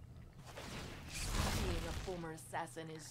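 A magical whoosh bursts out as a spell goes off.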